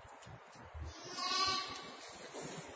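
A young goat bleats close by.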